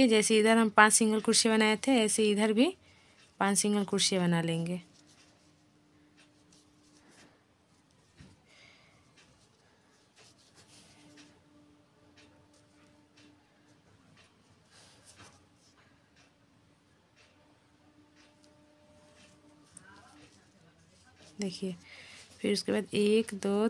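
A crochet hook softly rustles and ticks through yarn.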